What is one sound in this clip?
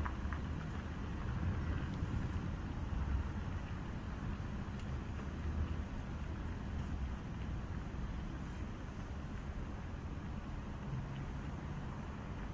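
Distant city traffic rumbles steadily.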